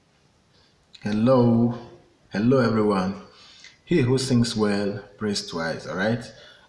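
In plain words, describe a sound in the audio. A young man speaks calmly and clearly, close to the microphone.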